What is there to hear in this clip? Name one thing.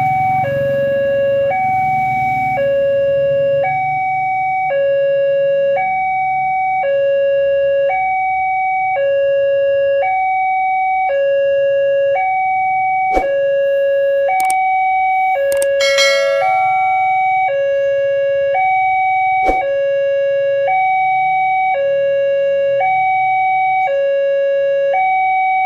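A level crossing alarm rings steadily in two alternating tones.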